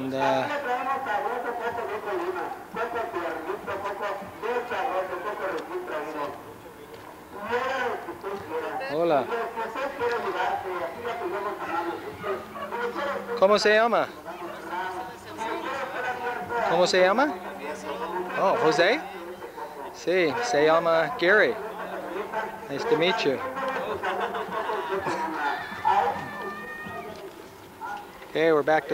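Men talk with each other nearby, outdoors.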